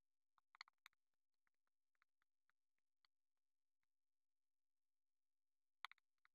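Fingers tap and click lightly against a phone.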